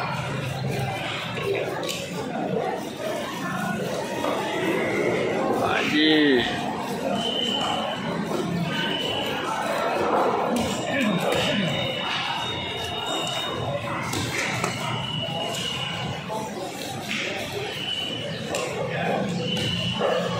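A knife slices through raw fish.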